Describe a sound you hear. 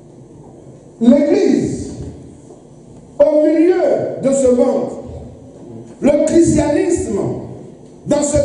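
A man preaches with animation through a microphone, his voice booming in an echoing hall.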